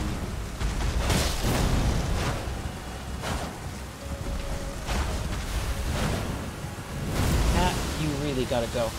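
Heavy crashing blows thud and rumble nearby.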